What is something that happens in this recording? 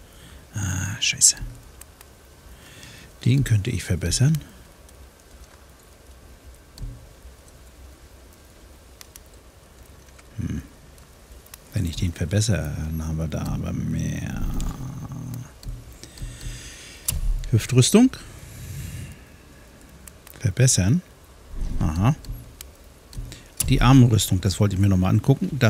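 Soft menu clicks and chimes sound as selections change.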